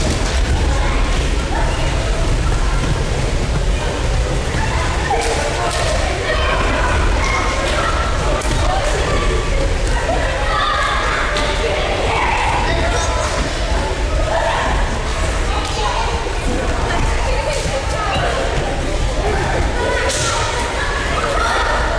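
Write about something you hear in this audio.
Bodies thump and slide on gym mats.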